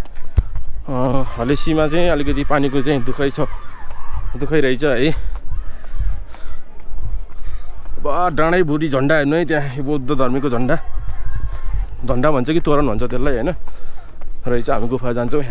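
Footsteps tread down stone steps outdoors.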